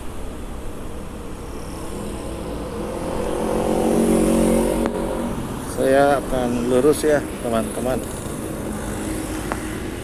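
Cars and motorcycles pass by on the road.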